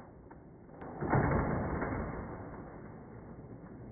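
A small toy car rattles along a plastic track.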